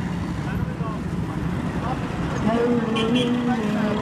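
A motorbike engine runs close by.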